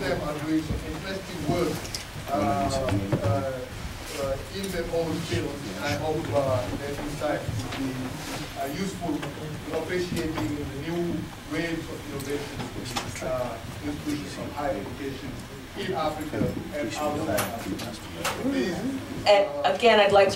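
A man speaks calmly into a microphone in a large echoing hall.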